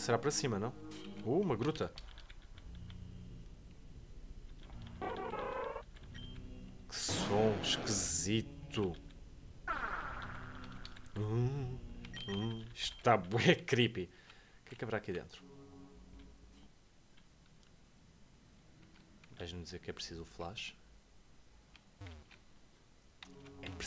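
Chiptune game music plays with beeping sound effects.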